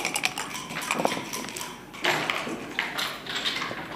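Plastic game pieces click against a wooden board.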